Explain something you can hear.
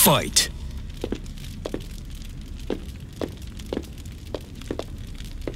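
Footsteps shuffle lightly on a hard floor.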